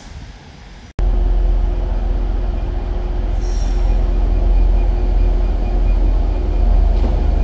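A diesel train rumbles as it approaches along the tracks.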